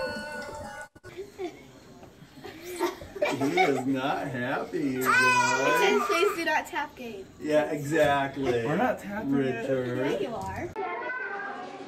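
A toddler squeals and babbles excitedly close by.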